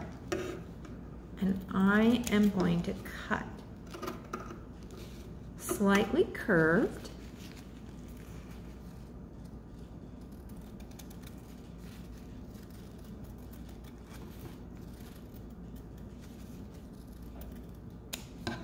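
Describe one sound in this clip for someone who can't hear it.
Scissors snip through crinkly paper.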